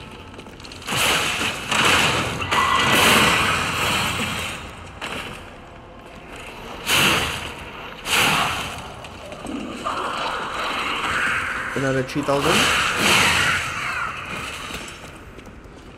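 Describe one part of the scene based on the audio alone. Heavy weapon strikes clash and thud in a fight.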